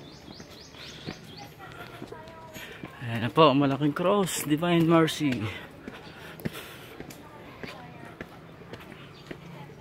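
A woman takes quick footsteps up stairs outdoors.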